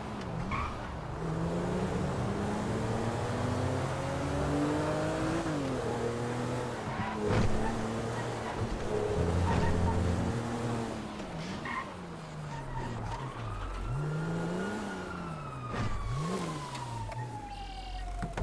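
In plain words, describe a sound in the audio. A car engine revs up and down as the car speeds along.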